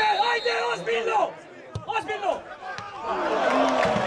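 A football is kicked hard.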